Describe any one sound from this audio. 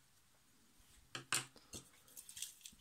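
A plastic part clicks softly as fingers handle it.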